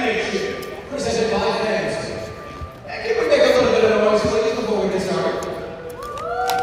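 A man announces loudly over a loudspeaker in a large echoing arena.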